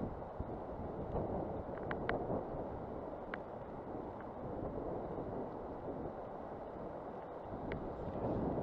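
A river rushes steadily over stones.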